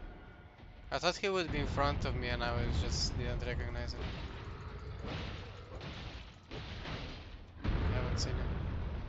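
Heavy blows thud and crash on the ground.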